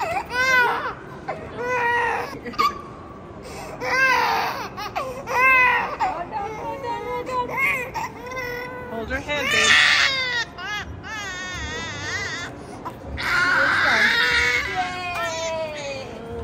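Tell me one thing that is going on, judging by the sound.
A baby cries loudly in wailing bursts.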